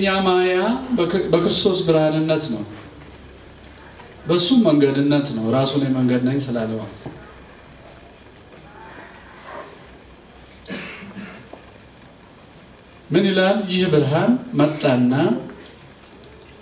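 A middle-aged man speaks into a microphone in measured bursts, with pauses between.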